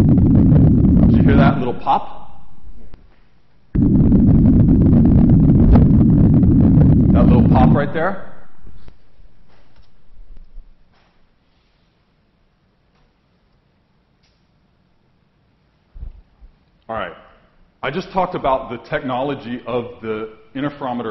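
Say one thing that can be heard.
A man lectures calmly through a microphone in a large room.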